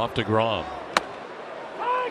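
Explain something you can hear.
A ball pops into a catcher's mitt.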